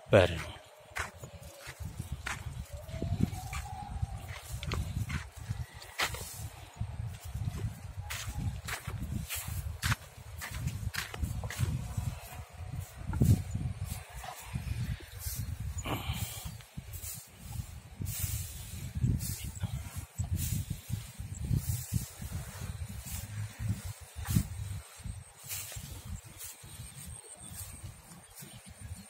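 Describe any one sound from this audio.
Dry stalks rustle and crunch under a man's footsteps.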